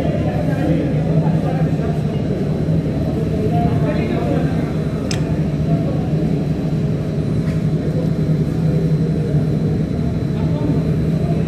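A crowd of men talks and murmurs close by.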